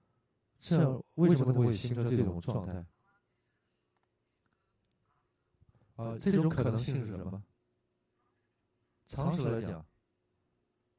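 An elderly man lectures with animation through a microphone.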